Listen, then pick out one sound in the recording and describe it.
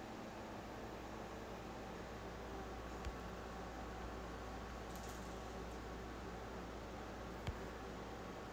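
A hand pats a cat's fur with soft thumps.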